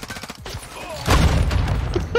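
A rifle fires a single loud, booming shot.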